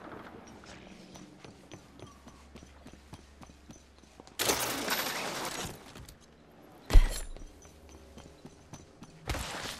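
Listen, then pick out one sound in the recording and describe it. Footsteps clank lightly on a metal floor.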